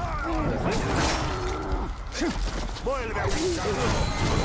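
Ice shatters with a sharp crackling burst.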